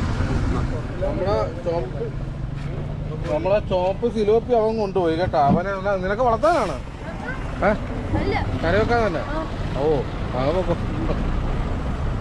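Men talk with animation close by, outdoors.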